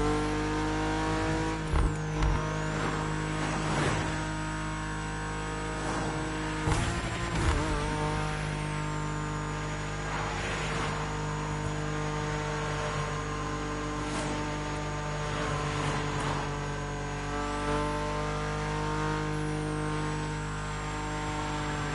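A powerful car engine roars steadily at high speed.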